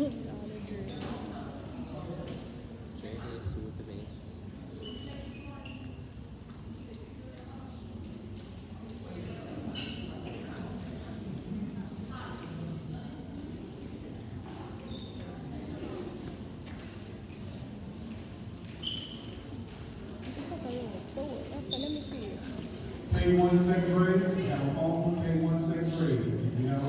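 A young man talks quietly close by.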